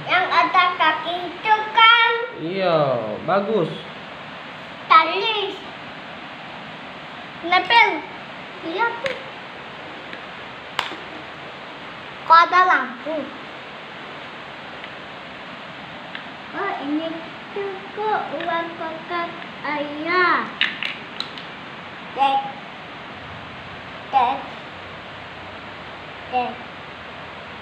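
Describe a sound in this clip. A young boy talks close by in bursts, with animation.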